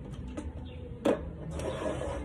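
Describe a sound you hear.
A can clinks down on a table.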